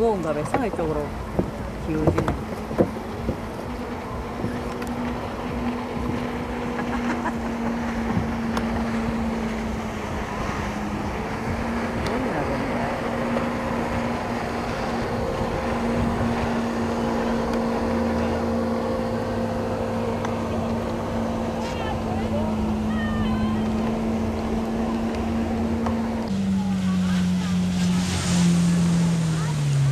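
A jet ski engine drones steadily nearby.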